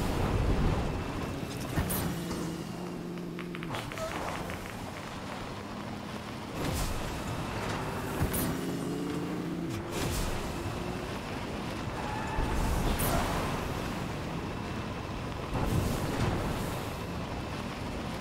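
A truck engine roars steadily as it drives fast.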